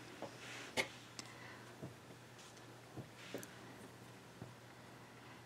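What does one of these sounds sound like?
A crochet hook taps and clicks softly against yarn.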